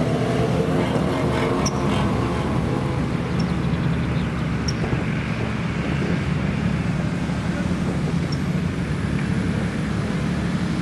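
An off-road 4x4 engine labours as the vehicle climbs a grassy slope outdoors.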